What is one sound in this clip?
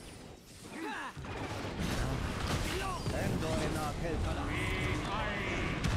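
Game spell effects whoosh, crackle and blast in a busy battle.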